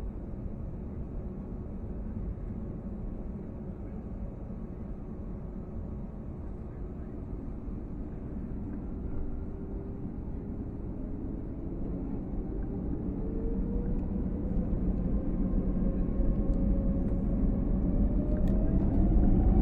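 An aircraft rumbles over the runway.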